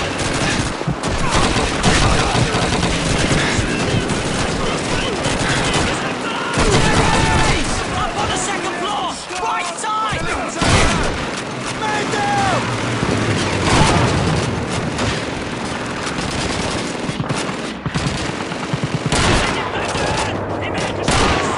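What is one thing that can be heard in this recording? A submachine gun fires rapid bursts of gunshots.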